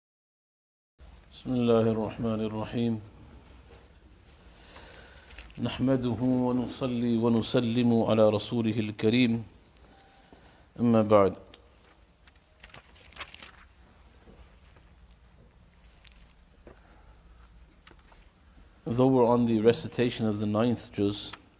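A man recites in a slow, melodic voice close to a microphone, pausing between phrases.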